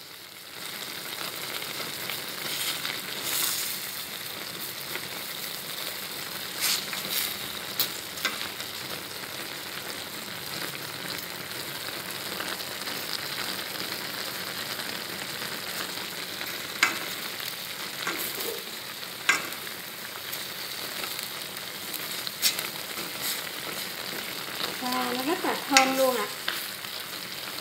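Food sizzles and simmers steadily in a pot.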